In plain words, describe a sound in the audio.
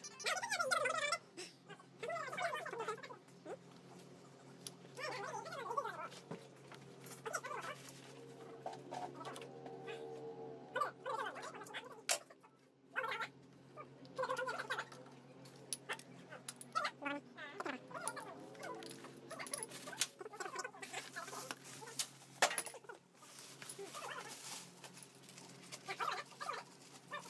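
Metal parts and tools clink and rattle.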